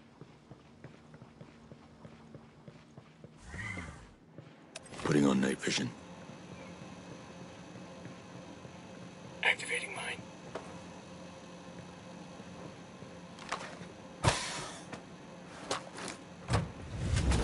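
Boots step softly on a hard floor.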